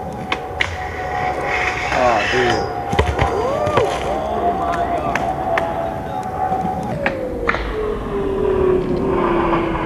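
A skateboard grinds along a metal rail.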